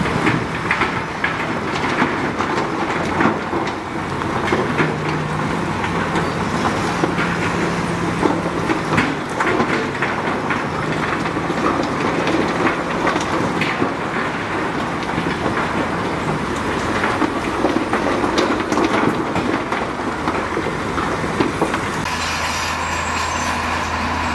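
Rocks and dirt scrape and crunch under a bulldozer blade.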